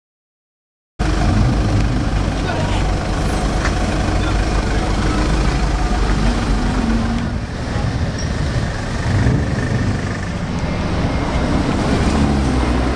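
A sports car engine rumbles loudly at low speed.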